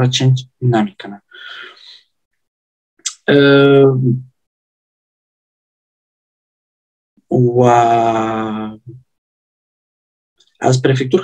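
A man speaks calmly over an online call, with long pauses.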